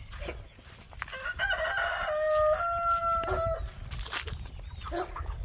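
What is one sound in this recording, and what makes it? Hens cluck and croon nearby.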